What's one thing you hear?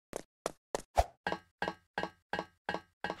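Footsteps clack on wooden ladder rungs.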